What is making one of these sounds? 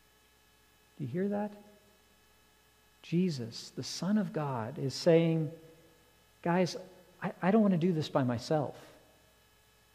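A man speaks with expression into a microphone in a slightly echoing room.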